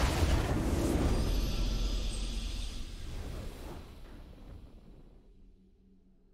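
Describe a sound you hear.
A triumphant game fanfare swells and slowly fades.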